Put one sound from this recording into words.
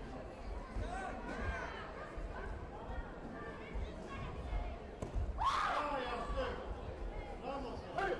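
Taekwondo fighters shout sharply as they attack.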